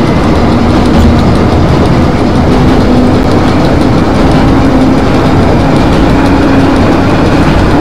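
An electric train rumbles steadily along the track.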